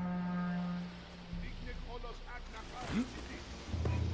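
Feet rustle through tall grass.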